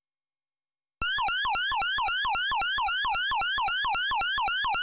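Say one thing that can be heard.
Fast electronic bleeps repeat in a quick, warbling pattern.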